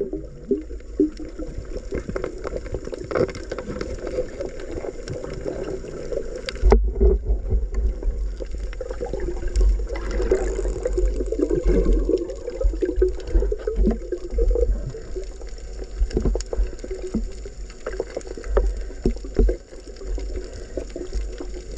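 Water rumbles and hisses steadily underwater.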